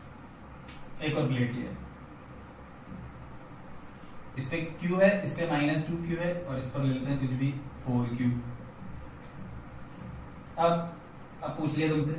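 A young man speaks calmly and explains, close by in a small room.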